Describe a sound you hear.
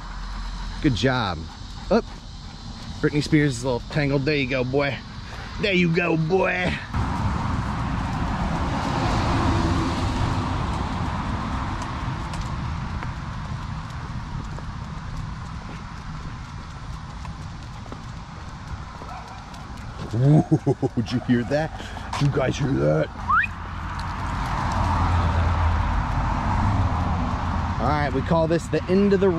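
Footsteps scuff along a concrete path.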